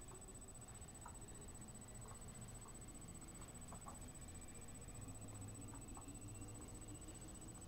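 Footsteps patter lightly on hard ground.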